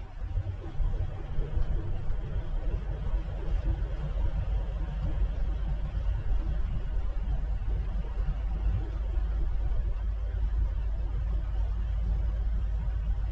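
Tyres roll on asphalt with a steady rumble.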